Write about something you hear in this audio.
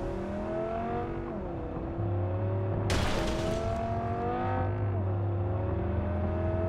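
A car engine revs up and drops as it shifts through gears.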